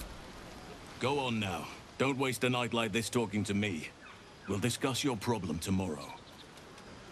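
A man speaks calmly in a deep, low voice, close by.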